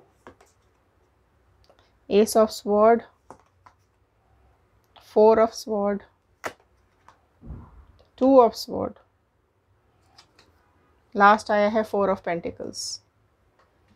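Playing cards shuffle and slap softly onto a table.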